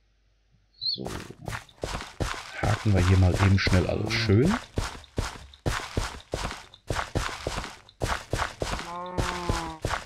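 Soil crunches in short bursts as a hoe tills the ground.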